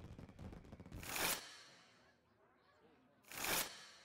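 A video game plays short whooshing sound effects.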